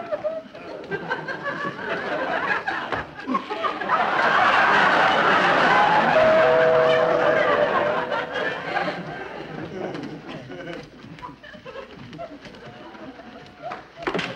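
A wooden chair bumps and knocks about.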